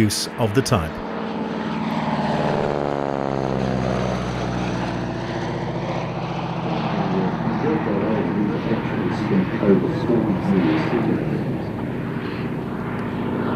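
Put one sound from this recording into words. A small propeller plane's engine drones overhead, rising and falling in pitch as it passes.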